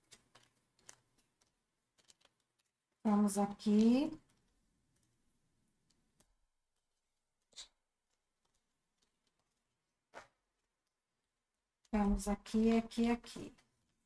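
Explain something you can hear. Playing cards slide and tap softly against each other.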